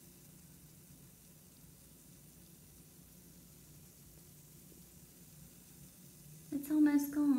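Water fizzes softly as a bath bomb dissolves.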